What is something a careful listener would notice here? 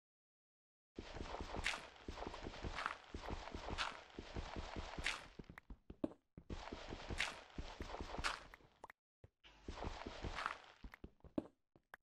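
A pickaxe digs into dirt and stone with quick, repeated crunching.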